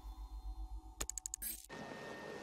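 Short electronic menu beeps chime in quick succession.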